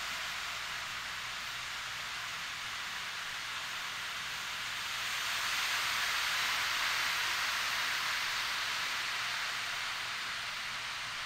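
Beads roll and patter steadily inside a tilted ocean drum, swelling like surf.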